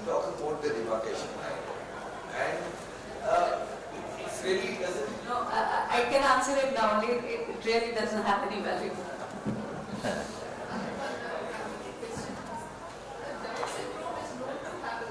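A woman speaks into a microphone with animation.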